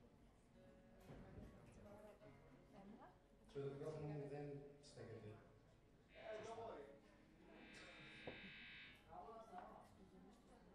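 A live band plays electric guitars in an echoing room.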